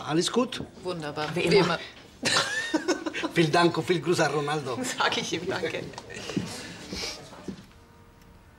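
An elderly man speaks calmly and politely.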